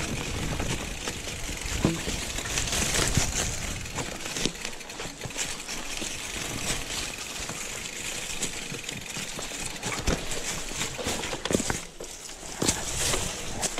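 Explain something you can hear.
Bicycle tyres crunch over dry leaves and rough ground.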